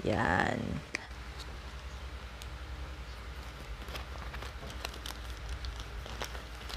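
Scissors snip paper.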